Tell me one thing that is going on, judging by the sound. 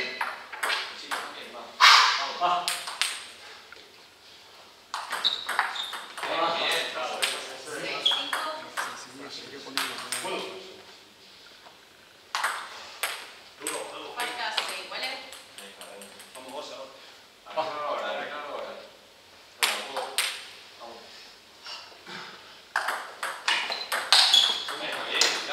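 A table tennis ball clicks back and forth on paddles and the table in an echoing hall.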